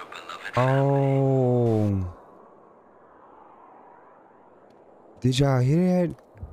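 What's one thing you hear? A young man sings out long, loud drawn-out notes close to a microphone.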